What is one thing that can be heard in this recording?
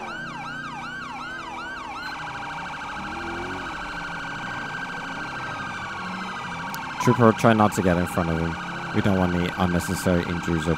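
A police siren wails loudly and keeps changing its pitch.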